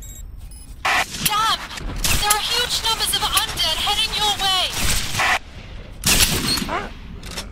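Zombies growl and moan.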